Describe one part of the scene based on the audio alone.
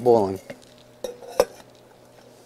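A metal pot clinks as it is handled.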